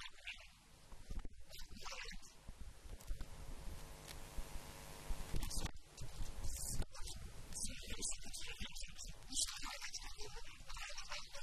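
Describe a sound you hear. A second young man answers into a microphone through a loudspeaker.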